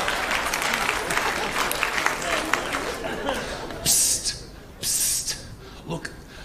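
An audience laughs and applauds in a large hall.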